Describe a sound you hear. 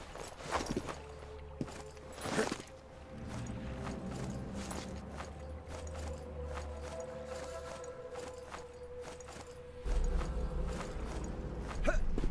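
Hands scrape and grip on stone as a man climbs a wall.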